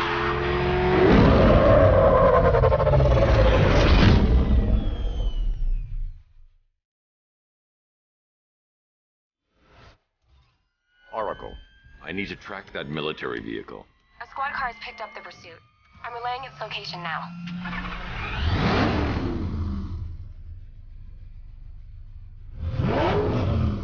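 A powerful car engine roars and revs loudly.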